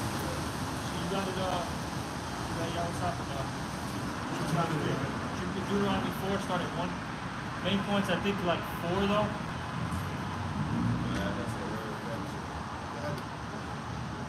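Several men sing together nearby, outdoors.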